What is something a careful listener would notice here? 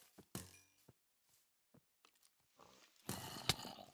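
Dirt crunches as blocks are dug.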